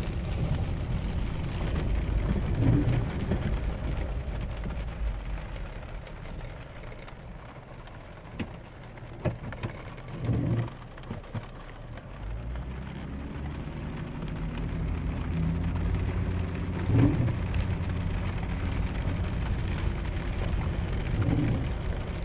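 Tyres crunch over a gravel road.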